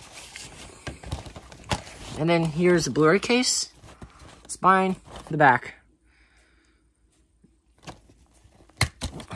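A plastic disc case clacks and rattles as it is handled.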